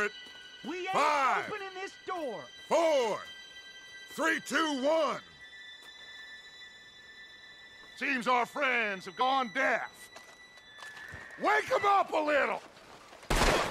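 A man speaks in a low, gruff voice, close by.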